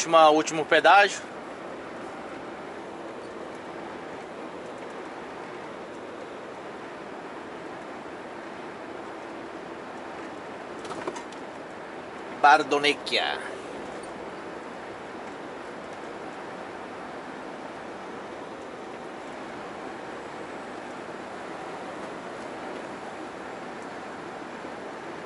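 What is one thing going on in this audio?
A truck engine hums steadily with road noise from inside the cab.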